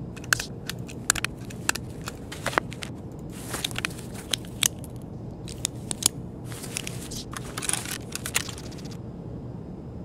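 Gear rustles and clicks sharply as items are moved about.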